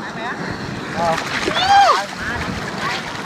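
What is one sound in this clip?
Water splashes loudly as a young man plunges in.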